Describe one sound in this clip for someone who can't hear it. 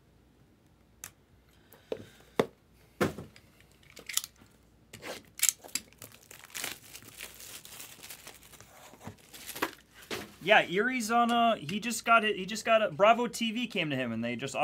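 Cardboard boxes rustle and knock as hands handle them.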